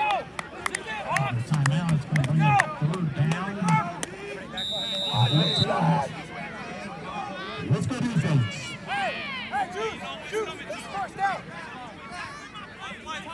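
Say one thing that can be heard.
A crowd cheers and shouts outdoors at a distance.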